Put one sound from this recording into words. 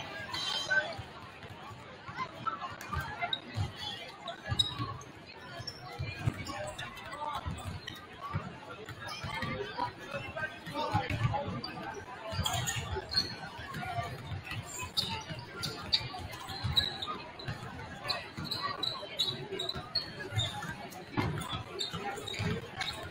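A crowd murmurs in the stands.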